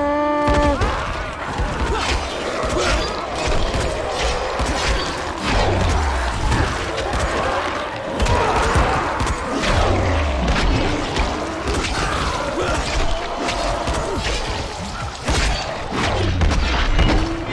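Heavy blows thud and squelch into bodies.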